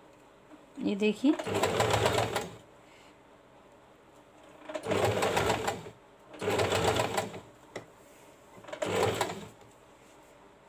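A sewing machine runs in short rapid bursts of stitching.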